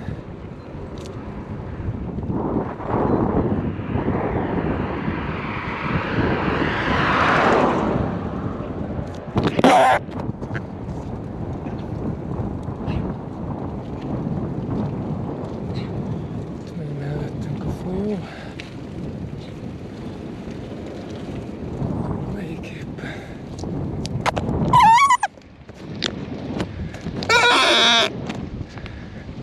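Wind rushes over the microphone outdoors.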